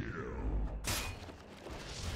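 A magic spell bursts with a sharp crackling blast.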